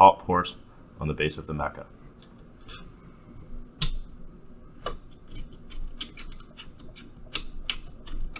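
A cable plug clicks and scrapes into a metal socket.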